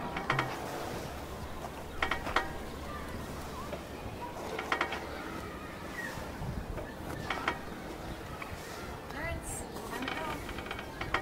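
Metal swing chains clink and creak as a swing sways.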